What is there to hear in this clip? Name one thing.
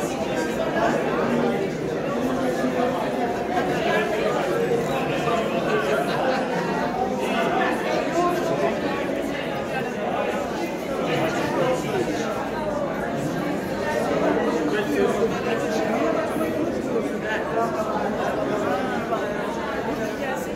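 A crowd of men and women chatter all around in a busy echoing room.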